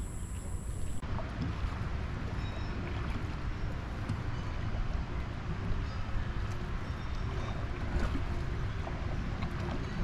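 A paddle splashes in water.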